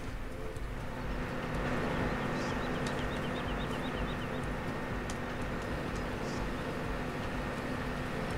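A combine harvester engine drones loudly.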